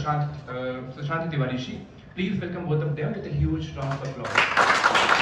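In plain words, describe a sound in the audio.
A man speaks into a microphone, heard over loudspeakers in a hall.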